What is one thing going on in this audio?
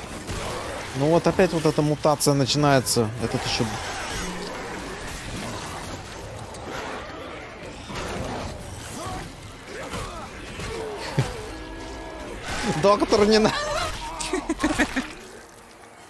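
A monster growls and snarls loudly.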